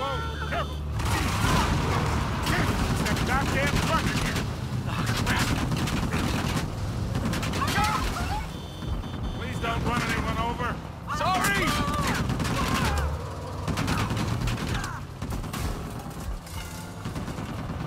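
Gunshots crack repeatedly nearby.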